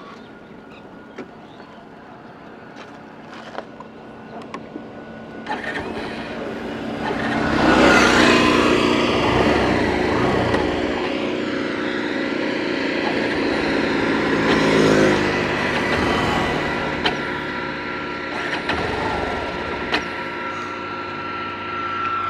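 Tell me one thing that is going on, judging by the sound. A motorcycle engine hums and revs up as the bike speeds along.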